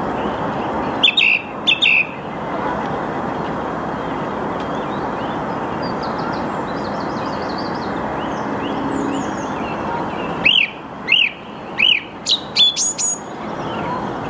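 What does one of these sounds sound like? A songbird sings loud, clear, repeated phrases close by.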